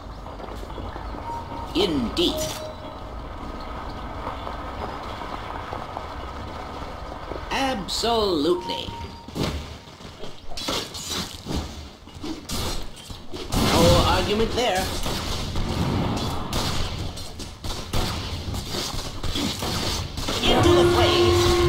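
Fantasy battle sound effects of spells and sword blows crackle and clang.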